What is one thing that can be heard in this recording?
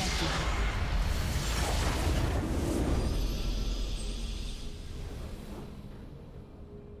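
A loud magical blast roars and whooshes, then slowly fades.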